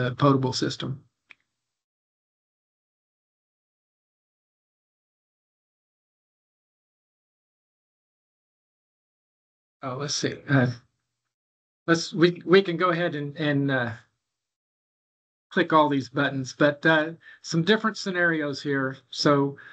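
An elderly man speaks calmly through an online call, with pauses.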